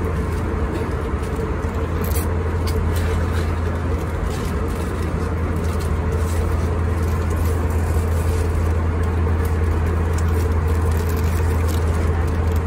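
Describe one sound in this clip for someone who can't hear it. Plastic packaging crinkles in a hand.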